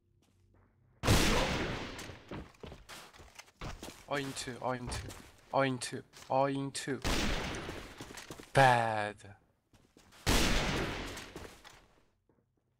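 A bolt-action sniper rifle fires a booming shot.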